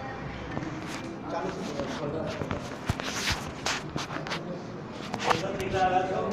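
A phone is handled and rubbed, with rustling and knocks.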